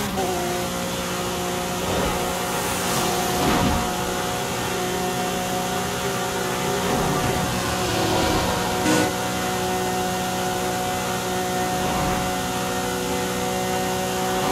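Wind rushes past a fast car.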